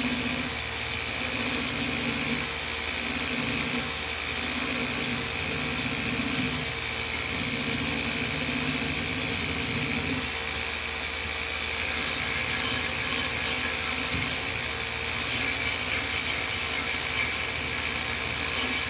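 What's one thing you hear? A belt sander grinds steadily against wood.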